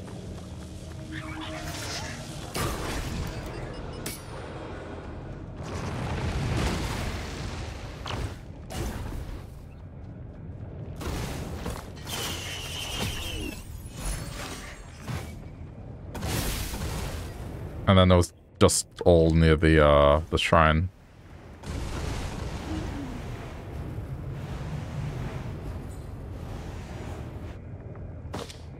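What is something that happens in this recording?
Footsteps thud quickly over rough ground.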